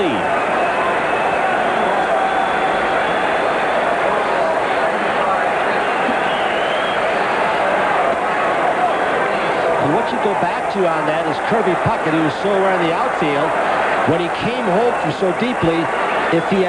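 A stadium crowd murmurs and cheers steadily in a large open space.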